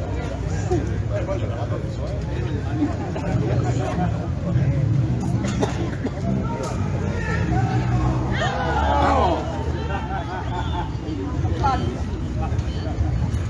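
A large brass and saxophone band plays loudly outdoors.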